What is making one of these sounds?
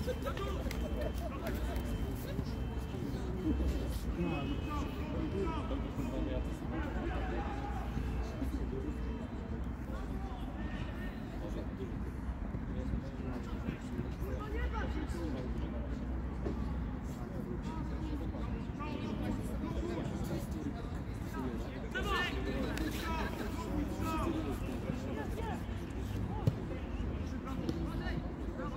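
Football players shout to each other across an open field, far off.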